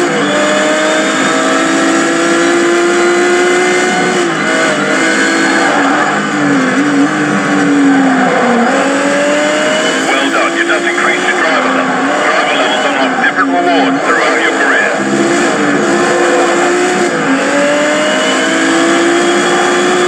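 A racing car engine roars and whines through gear changes from a television speaker.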